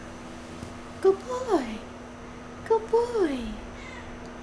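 A cat meows loudly, twice.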